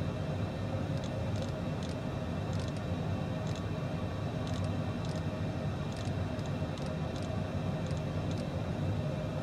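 A cockpit knob clicks several times in quick succession.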